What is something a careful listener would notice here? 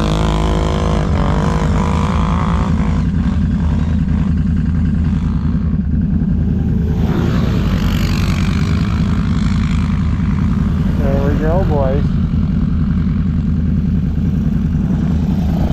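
A snowmobile engine drones loudly and steadily close by.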